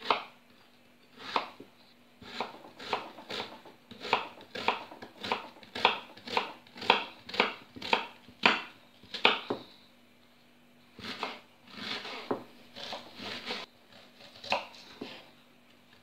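A knife chops an onion on a wooden board with quick, sharp knocks.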